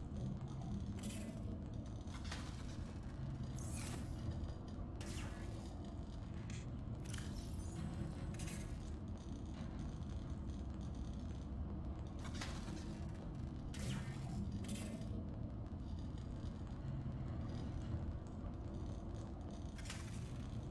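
Short electronic interface blips sound again and again.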